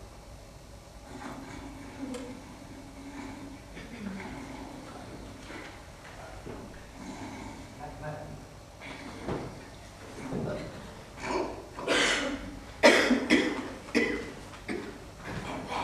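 A woman speaks in reply.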